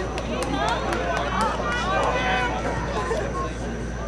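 Spectators chatter nearby outdoors.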